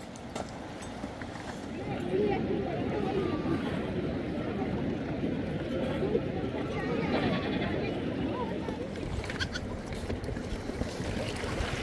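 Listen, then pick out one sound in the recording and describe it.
A river rushes and gurgles over stones.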